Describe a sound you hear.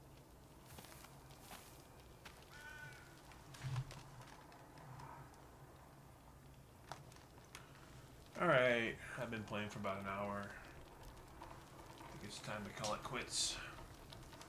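A small campfire crackles.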